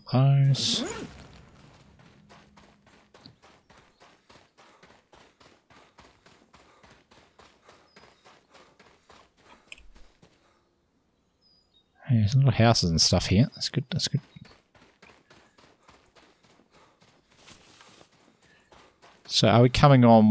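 Footsteps tread steadily through grass and dirt.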